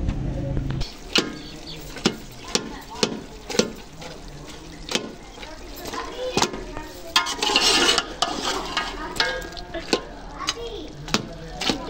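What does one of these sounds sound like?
A metal ladle scrapes and clinks against a metal pot.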